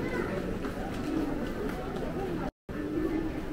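Voices of a crowd murmur in a large echoing hall.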